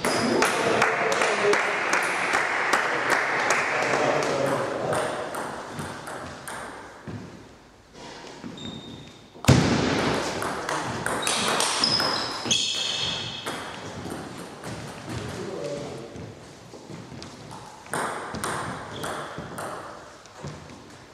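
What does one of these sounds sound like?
A table tennis ball clicks back and forth across a table and paddles in an echoing hall.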